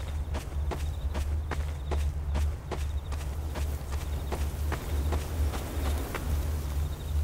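Footsteps tread on dirt at a steady walking pace.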